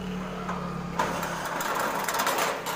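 A power drill whirs and rattles against metal.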